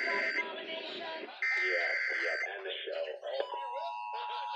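A radio blares harsh screeching data bursts.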